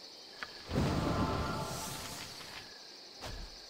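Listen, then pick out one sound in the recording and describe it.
A magical blast whooshes loudly and fades.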